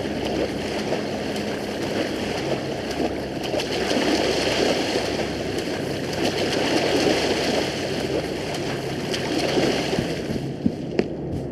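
Water splashes in a steady rhythm of swimming strokes.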